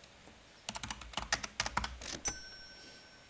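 Keypad buttons on a card reader click in quick succession.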